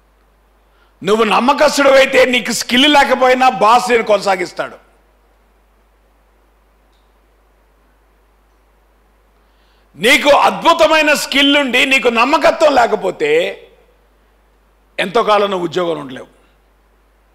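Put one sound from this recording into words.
A man speaks with animation into a microphone, in bursts separated by pauses.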